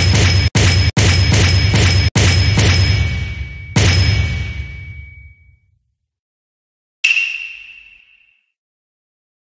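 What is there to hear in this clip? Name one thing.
Bright game chimes and upgrade sounds ring out.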